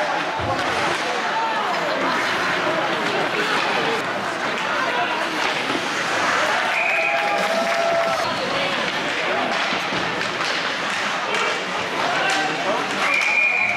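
A crowd of spectators chatters and cheers in a large echoing rink.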